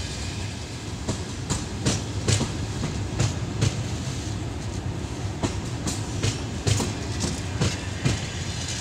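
A passenger train rumbles past.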